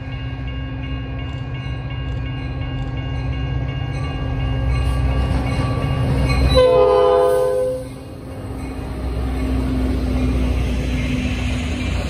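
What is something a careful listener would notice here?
A diesel locomotive engine rumbles loudly as a train approaches and passes.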